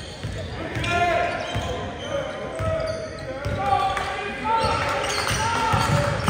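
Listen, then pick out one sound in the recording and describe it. A basketball thuds as it bounces on a hardwood floor.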